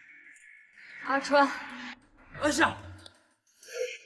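A young woman gasps and cries out.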